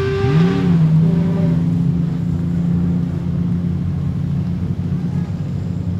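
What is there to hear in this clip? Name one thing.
A race car engine revs hard and roars loudly.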